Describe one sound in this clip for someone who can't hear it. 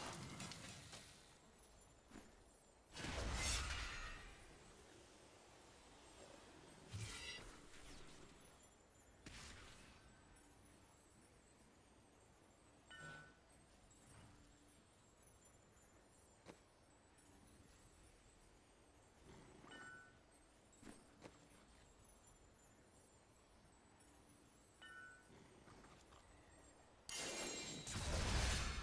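Bursts of magic whoosh and crackle.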